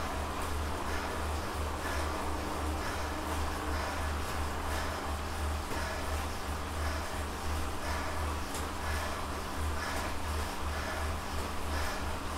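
An indoor bike trainer whirs and hums in a steady pulsing rhythm.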